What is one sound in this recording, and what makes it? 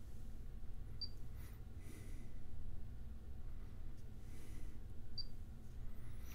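A car stereo gives a short electronic beep when its buttons are pressed.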